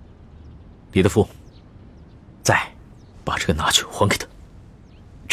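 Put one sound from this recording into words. A young man speaks calmly and firmly nearby.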